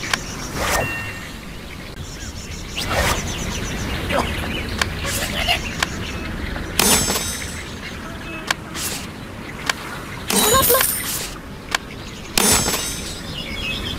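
Game sound effects chime and whoosh as menus change.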